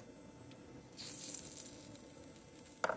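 Vegetables sizzle briefly as they drop into a hot pan.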